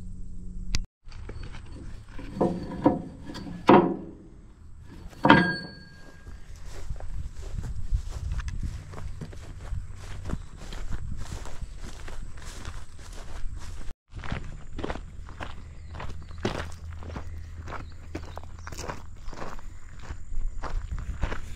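Footsteps crunch through grass and gravel.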